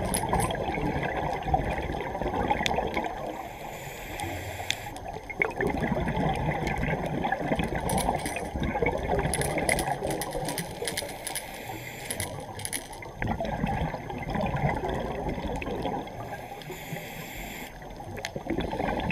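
Water rumbles and gurgles in a low, steady underwater roar.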